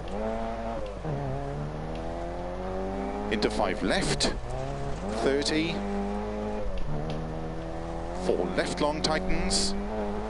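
A car engine revs steadily and drops in pitch with each gear change.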